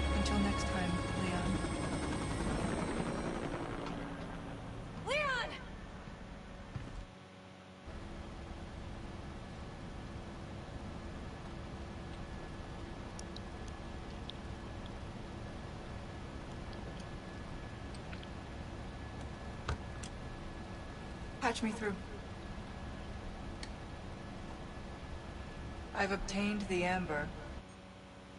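A young woman speaks calmly over a headset radio.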